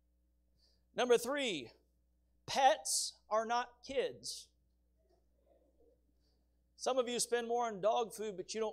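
A man preaches through a microphone with measured pauses.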